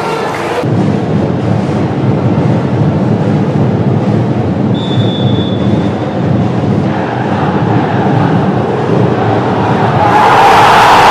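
A large stadium crowd chants and murmurs steadily.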